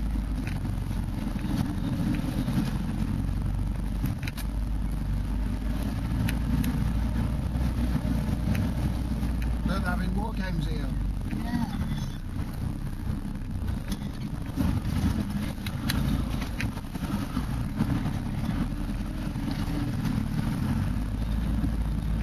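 The vehicle bumps and rattles over a rough dirt track.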